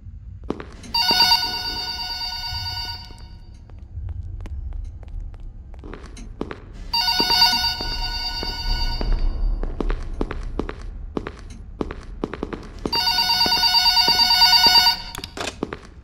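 A telephone rings in short bursts, several times.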